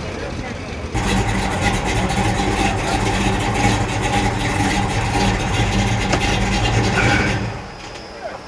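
A car engine idles with a steady low drone.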